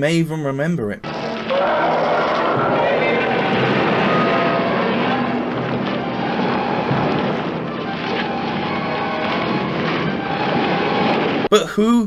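Heavy crashing and thudding rumble as giant monsters fight.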